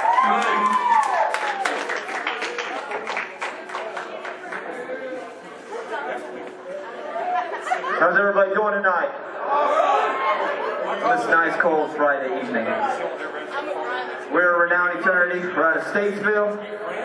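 A band plays loud rock music in an echoing room.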